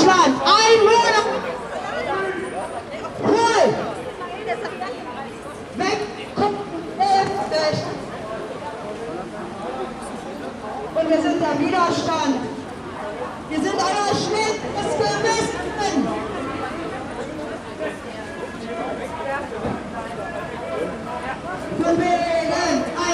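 A crowd of men and women chat as they walk along outdoors.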